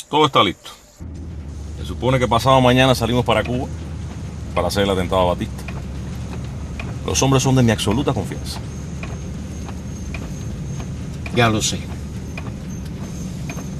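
A car engine hums inside a car.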